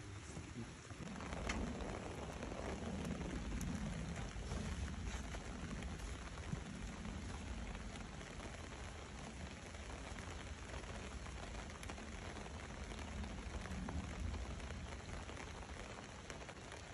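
Light rain falls steadily outdoors.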